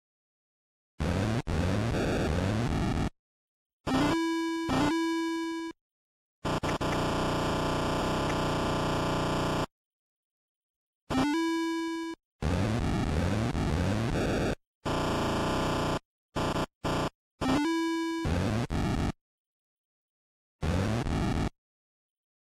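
Retro video game shots and explosions burst in quick chiptune bleeps.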